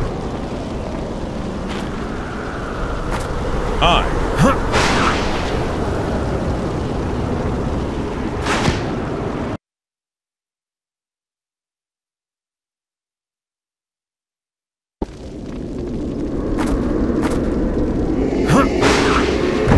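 Sharp blows and crashes land in a scuffle.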